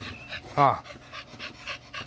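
A dog pants close by.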